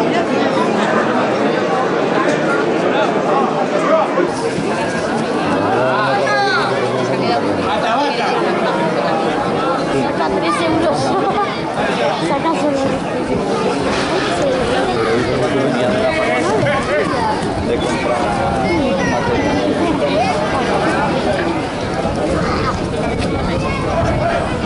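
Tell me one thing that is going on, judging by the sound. A young man shouts to draw a bull's attention.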